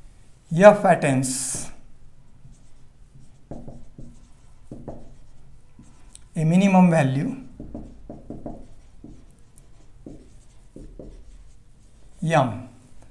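A man speaks calmly and clearly, as if lecturing.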